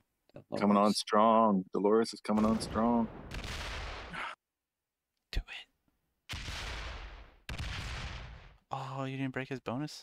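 A man talks with animation close to a headset microphone.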